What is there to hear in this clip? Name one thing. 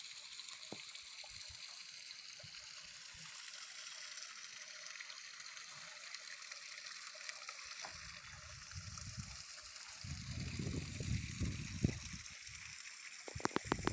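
A small stream trickles and splashes over rocks.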